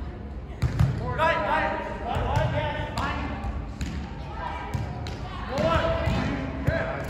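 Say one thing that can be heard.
Young men shout and call out during play.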